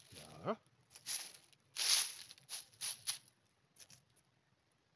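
Dry leaves rustle under a hand.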